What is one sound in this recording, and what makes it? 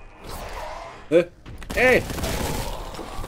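A monster lets out a loud, shrieking roar.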